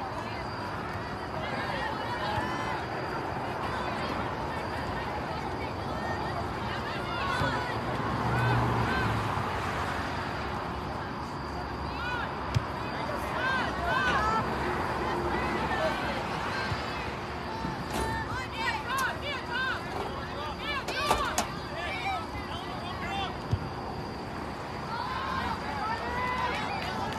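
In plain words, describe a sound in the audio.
A crowd of spectators chatters and calls out nearby, outdoors.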